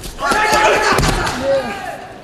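A body thuds onto a mat.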